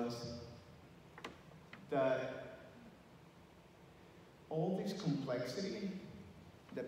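A middle-aged man speaks calmly into a microphone through loudspeakers in a large echoing hall.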